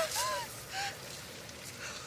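A young woman laughs weakly.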